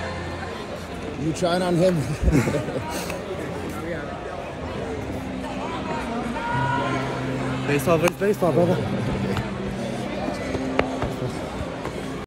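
A crowd murmurs throughout a large echoing hall.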